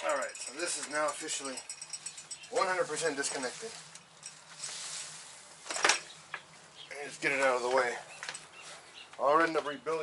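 Plastic parts clatter and knock.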